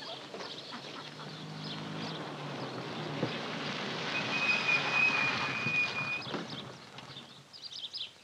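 A car engine idles with a low steady rumble.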